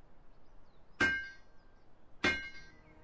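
A hammer strikes metal twice with ringing clangs.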